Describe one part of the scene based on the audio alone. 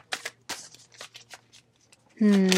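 Playing cards rustle and flick as they are shuffled.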